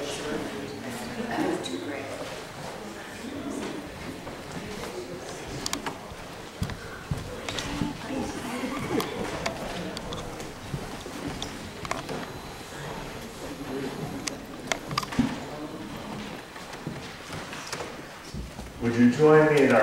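Men and women murmur quietly in an echoing hall.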